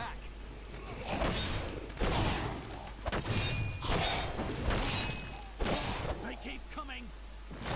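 Blows land hard in a loud fight.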